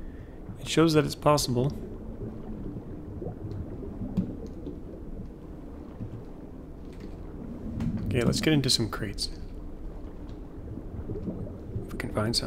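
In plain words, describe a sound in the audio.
Water gurgles softly underwater.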